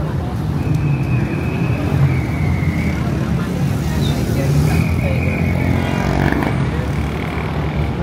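A crowd of people chatter in the distance.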